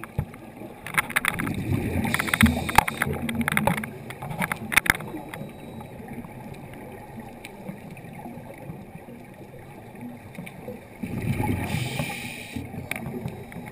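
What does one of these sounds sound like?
A diver breathes out through a regulator close by, and bubbles gurgle and rush.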